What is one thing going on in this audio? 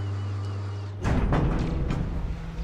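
A metal shipping container lands with a heavy clank.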